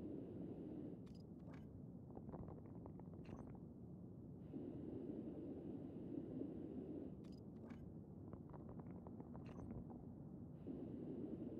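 A spray can rattles as it is shaken.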